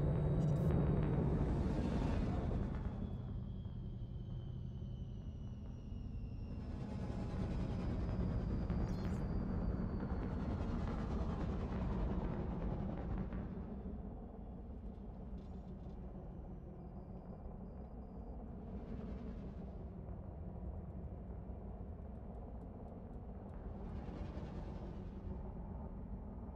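Spacecraft thrusters whoosh in short bursts.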